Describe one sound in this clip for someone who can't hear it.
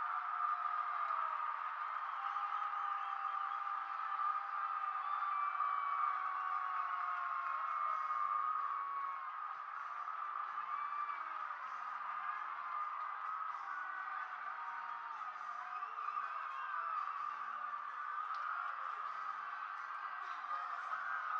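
Men on the field shout and whoop excitedly.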